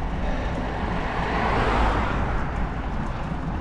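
A car drives past on the road with a rising and fading whoosh.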